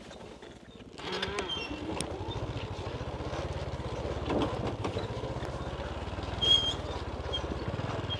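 A motorbike engine putters steadily at low speed.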